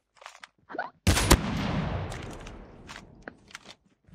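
A sniper rifle fires a single loud shot that echoes away.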